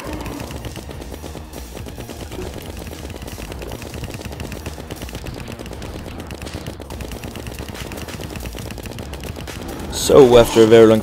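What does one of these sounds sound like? Rapid video game shots and hits crackle.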